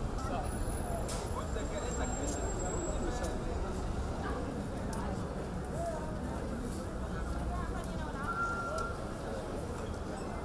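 A crowd of people chatters in a busy street outdoors.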